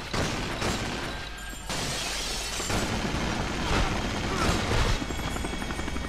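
Guns fire rapid bursts of shots.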